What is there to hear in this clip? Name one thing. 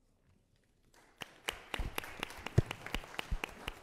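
A small group of people applauds in a large room.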